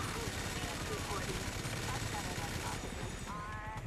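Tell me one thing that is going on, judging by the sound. A rapid-fire machine gun fires a long, roaring burst.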